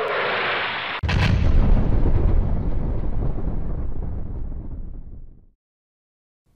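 A huge explosion booms and rumbles, then slowly dies away.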